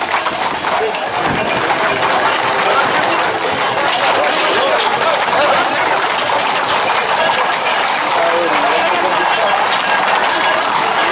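Many hooves clatter on pavement as a herd of horses trots past.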